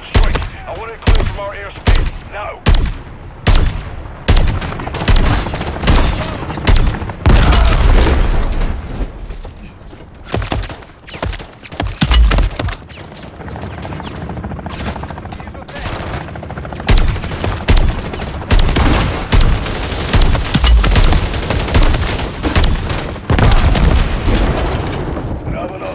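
Explosions boom with deep rumbles.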